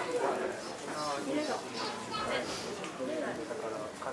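Young men talk quietly nearby.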